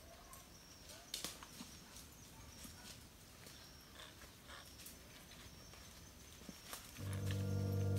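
Footsteps rustle and crackle through dry leaves and undergrowth.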